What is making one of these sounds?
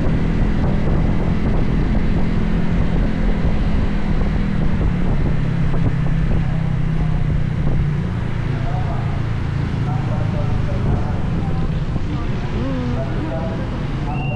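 Wind rushes past outdoors, easing as the ride slows.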